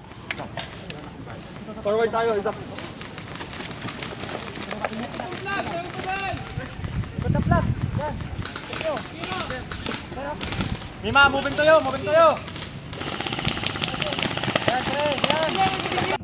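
Soldiers crawl and scramble through the grass, rustling.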